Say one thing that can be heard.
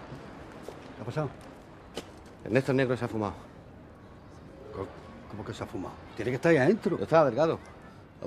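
A middle-aged man speaks close by with emotion.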